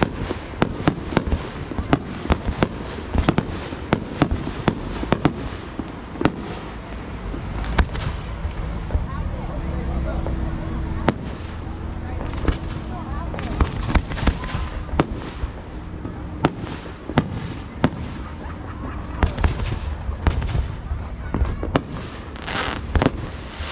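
Fireworks burst with sharp bangs and crackles.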